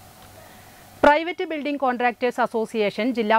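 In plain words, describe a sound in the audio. A young woman reads out the news calmly and clearly into a microphone.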